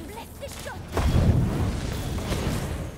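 A fiery explosion booms and crackles.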